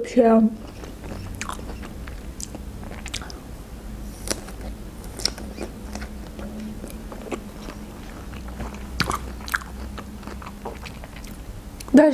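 A young woman chews and crunches fruit close to a microphone.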